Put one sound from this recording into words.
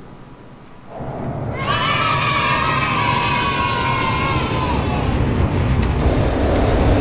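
A twin-engine fighter jet roars past with a whine that falls in pitch.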